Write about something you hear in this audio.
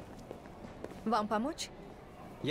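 A young woman speaks politely and close by.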